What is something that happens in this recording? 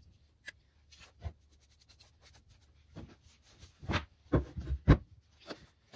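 Tools knock and clatter on a wooden board.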